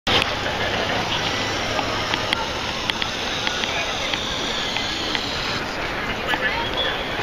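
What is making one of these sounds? A crowd of people chatter outdoors in the open air.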